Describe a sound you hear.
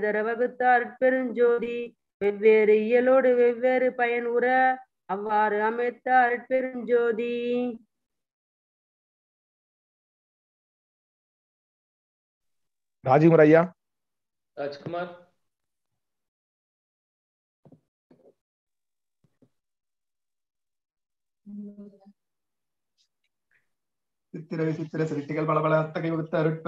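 A middle-aged man speaks calmly over an online call, in bursts with pauses.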